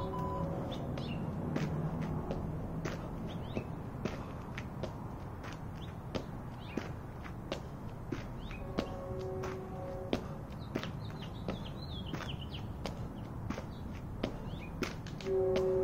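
Shoes thud rhythmically on a rubber mat as a man jumps, outdoors.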